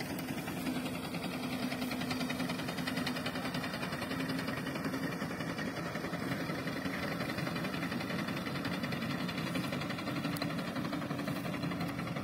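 A tractor engine drones far off.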